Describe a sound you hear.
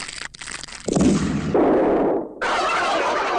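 A magic burst whooshes and crackles.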